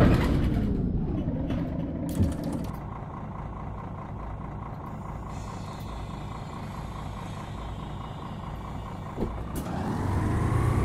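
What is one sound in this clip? A bus engine idles with a low, steady rumble.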